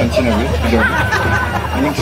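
A woman laughs loudly nearby.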